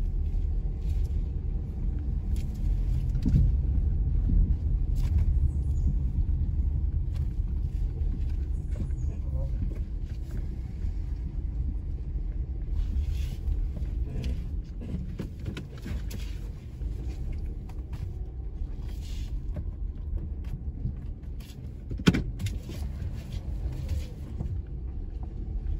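A car engine rumbles low and steady as it rolls slowly along.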